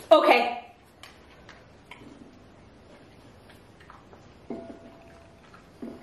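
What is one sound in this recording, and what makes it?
A dog licks and chews food off a plate.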